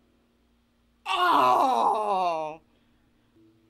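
A young woman squeals excitedly close by.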